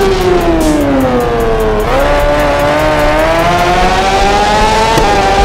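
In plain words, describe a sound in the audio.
A motorcycle engine whines loudly, dropping in pitch and then climbing again after a gear change.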